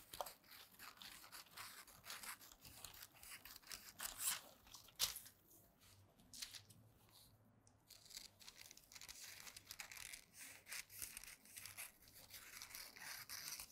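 Scissors snip through fabric with crisp cuts.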